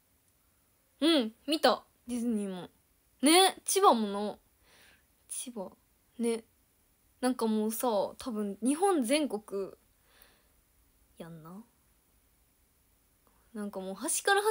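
A young woman speaks animatedly and close to a microphone, with pauses.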